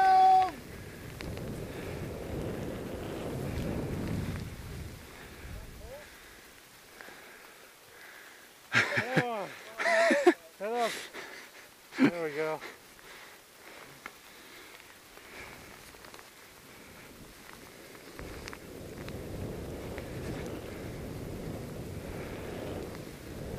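Skis hiss and swish through deep powder snow.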